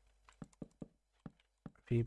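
A wooden block breaks with a crunching crackle.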